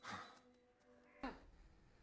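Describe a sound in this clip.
A woman speaks in a worried voice.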